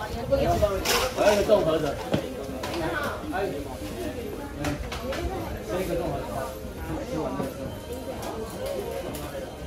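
A woman talks nearby in a busy, chattering space.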